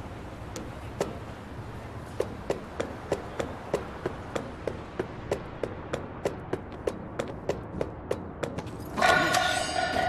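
Footsteps clank rhythmically on metal ladder rungs.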